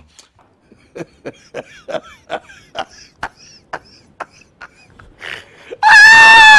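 A man laughs in short bursts close to a microphone.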